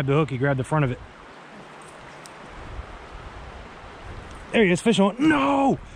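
A shallow river flows and ripples gently.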